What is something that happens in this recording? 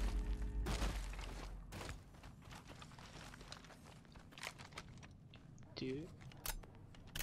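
Footsteps thud quickly on dry ground.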